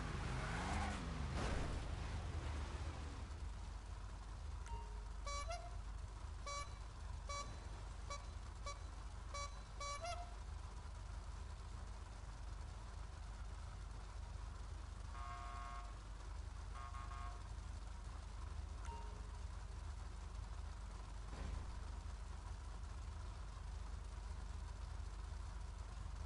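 Several race car engines idle with a low, steady rumble.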